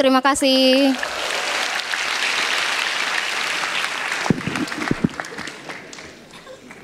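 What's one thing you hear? A large audience applauds.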